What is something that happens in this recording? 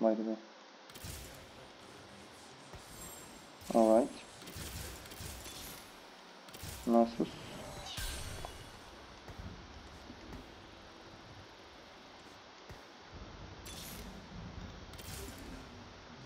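Magical blasts and clashing hits sound in a fast fight.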